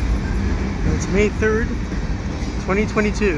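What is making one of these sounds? Train wheels squeal shrilly on the rails.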